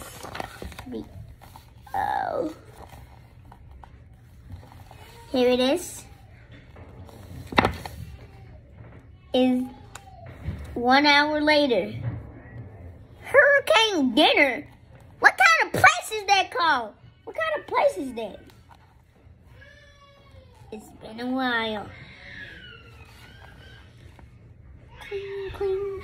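A young boy talks close by.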